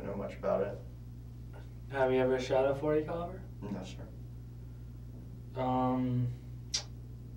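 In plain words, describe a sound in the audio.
A man answers calmly in a low voice.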